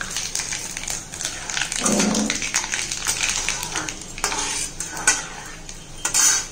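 Oil sizzles in a pan.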